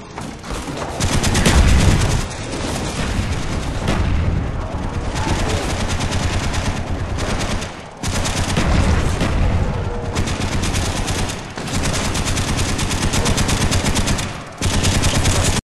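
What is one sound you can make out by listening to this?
Rapid gunfire rattles loudly and without pause.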